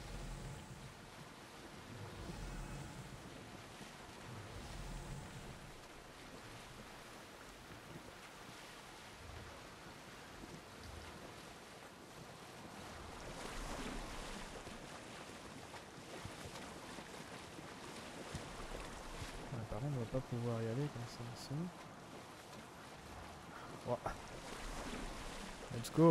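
Gentle waves lap and splash around a small boat.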